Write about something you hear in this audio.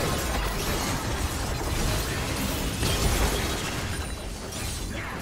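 Game spell effects crackle and burst during a fast battle.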